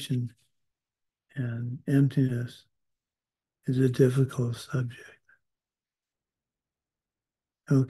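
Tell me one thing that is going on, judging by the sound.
An older man speaks calmly in short phrases through an online call.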